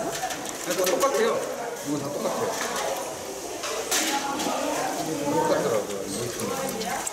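Women talk nearby with animation.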